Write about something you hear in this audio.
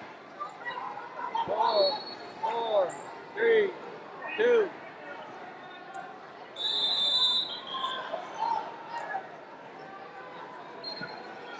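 A crowd murmurs in the background.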